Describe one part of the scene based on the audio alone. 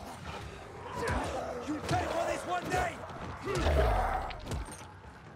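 A metal blade hacks into a creature with wet, heavy thuds.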